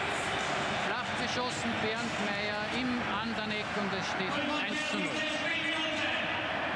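A stadium crowd erupts into loud cheers.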